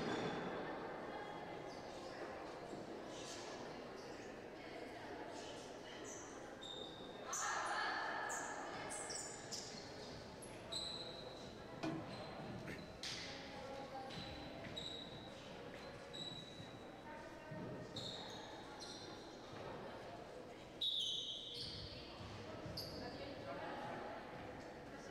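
Young women call out to each other in a large echoing hall.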